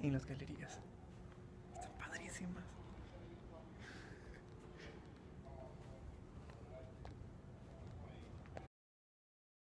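A young man speaks softly and close by, in a hushed voice.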